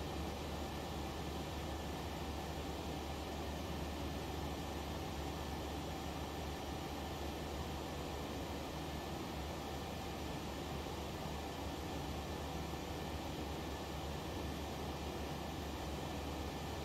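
Jet engines roar steadily with a low, even hum.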